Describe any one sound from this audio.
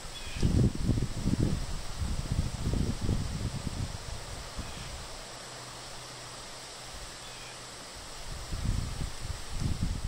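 Wind gusts and buffets outdoors in the open.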